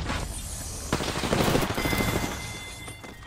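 Rapid gunshots crack nearby.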